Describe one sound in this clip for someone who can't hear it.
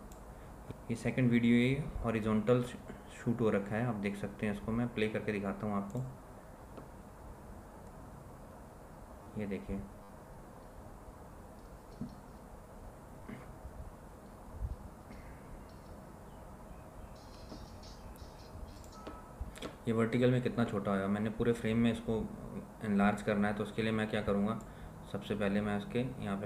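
A man talks calmly and closely into a microphone, with pauses.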